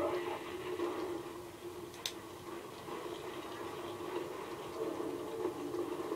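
Battle sound effects from a video game play through a small speaker.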